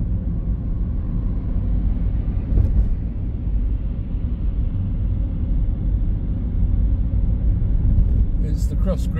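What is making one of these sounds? A car drives along a wet road, heard from inside with a low steady rumble.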